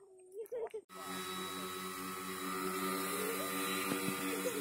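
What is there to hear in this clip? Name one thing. A model plane's electric motor whines steadily as the plane flies.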